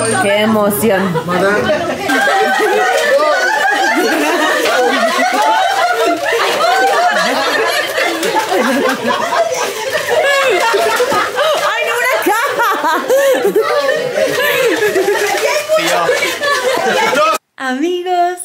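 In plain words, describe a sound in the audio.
A lively group of people chatter and shout together.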